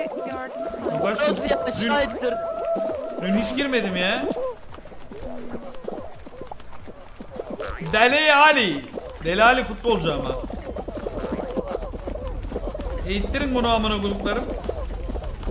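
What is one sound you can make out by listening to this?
A young man talks close by.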